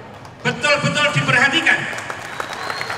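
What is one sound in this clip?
A man speaks into a microphone over a loudspeaker.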